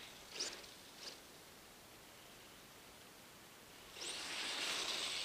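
A small electric motor whines in high, quick bursts and then loudly as a toy car speeds up close.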